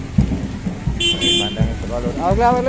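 A motorbike honks its horn briefly.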